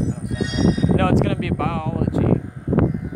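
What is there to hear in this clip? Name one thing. A short electronic chime rings out.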